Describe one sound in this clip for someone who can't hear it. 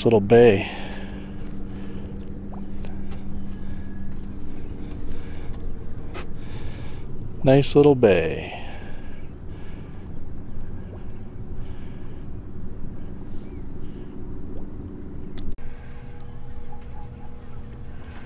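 Small waves lap gently against a boat's hull.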